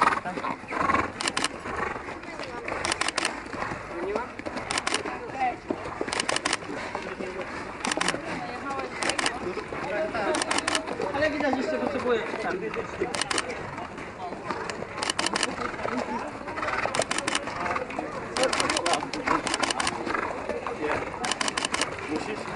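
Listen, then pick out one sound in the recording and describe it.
Horses' hooves clop on a path.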